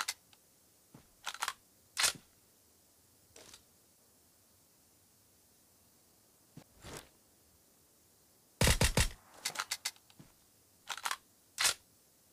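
Rifle shots crack in short, sharp bursts.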